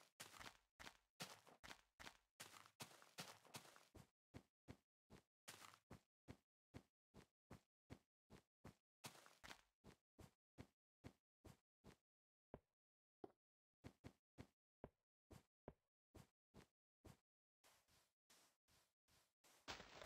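Footsteps crunch in a steady, quick rhythm on snow and sand.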